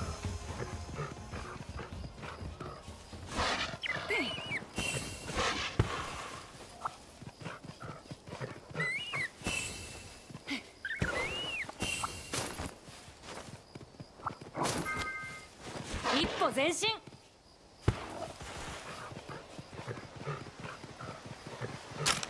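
A large beast runs, its paws pounding on the ground.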